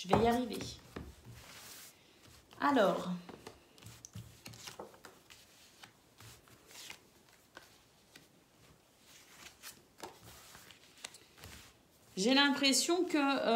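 Playing cards slide and tap softly as they are laid down.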